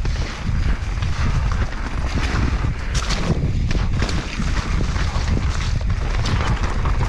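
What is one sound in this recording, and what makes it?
Bike tyres rattle and crunch over a rough dirt trail.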